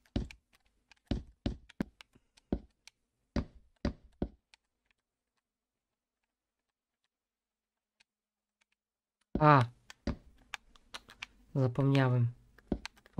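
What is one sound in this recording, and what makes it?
Wooden blocks knock softly as they are placed one after another.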